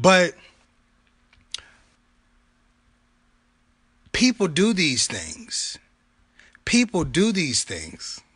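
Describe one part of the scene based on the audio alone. A man speaks with animation close to a phone microphone.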